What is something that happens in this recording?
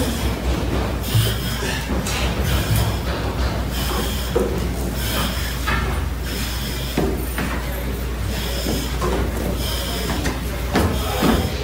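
Boots climb a stairwell's steps.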